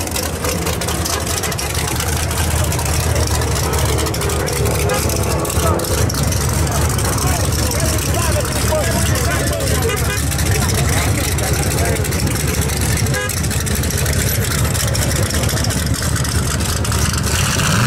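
A race car engine rumbles loudly and revs.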